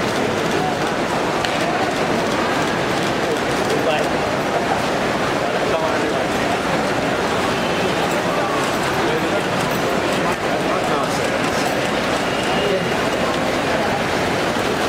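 A crowd of people talks and calls out in a large echoing hall.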